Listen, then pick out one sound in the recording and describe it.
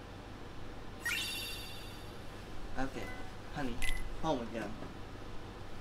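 A short electronic chime rings out with a sparkling sweep.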